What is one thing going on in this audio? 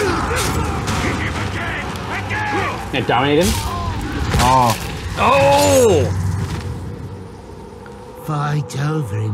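Men talk and laugh with animation, close to microphones.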